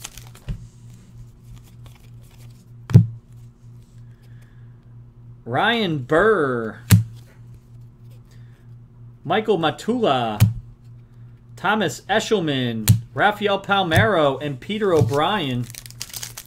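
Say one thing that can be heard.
Trading cards shuffle and slide against each other.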